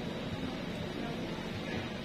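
Nail clippers snip a toenail with a small click.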